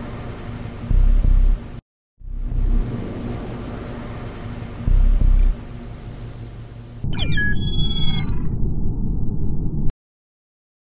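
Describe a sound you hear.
Electronic game music plays with soft thuds.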